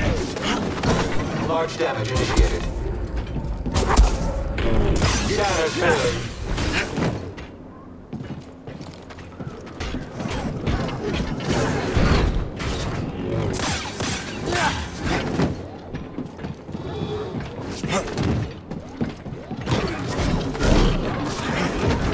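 A lightsaber hums and swings through the air.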